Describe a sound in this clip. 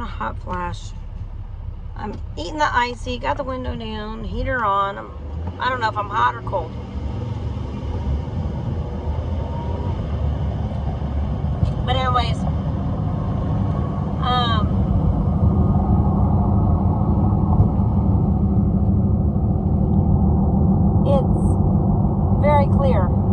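A car engine hums steadily and grows louder.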